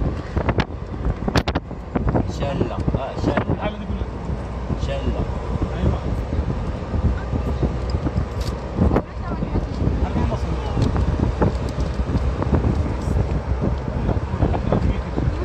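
Tyres and wind rumble inside a car moving at road speed.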